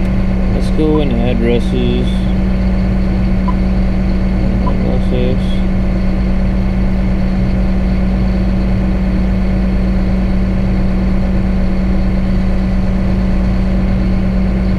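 A large engine drones steadily from inside an enclosed cab.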